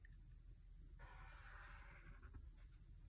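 A pen scratches across paper.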